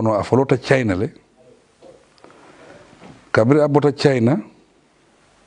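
A man speaks calmly and formally into a close microphone.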